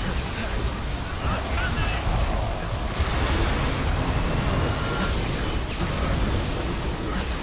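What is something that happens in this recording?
A crackling energy beam hums loudly.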